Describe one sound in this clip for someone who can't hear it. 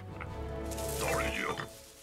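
An elderly man shouts sharply.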